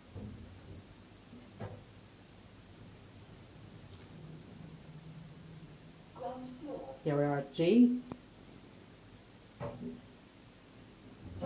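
An elevator hums faintly as it moves.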